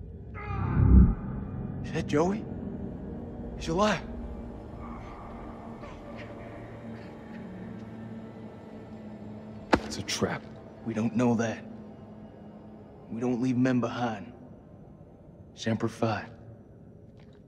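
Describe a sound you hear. A young man speaks urgently and close by.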